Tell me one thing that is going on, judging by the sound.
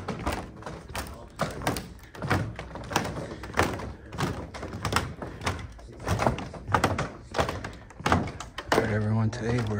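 Footsteps tap and shuffle across a hard wooden floor.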